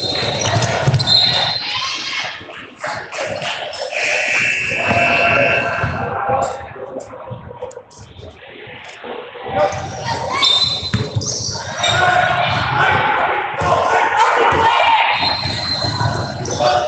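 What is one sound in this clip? Sneakers squeak on a hardwood floor in a large echoing gym.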